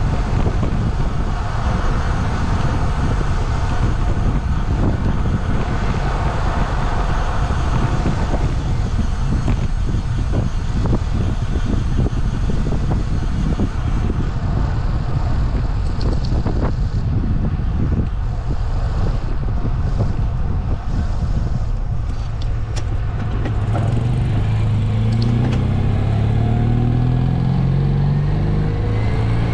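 A small car engine putters ahead and grows louder and clearer near the end.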